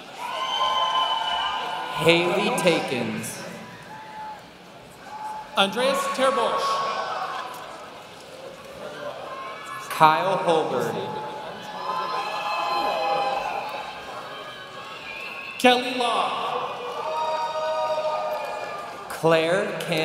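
A man speaks calmly to a graduate nearby.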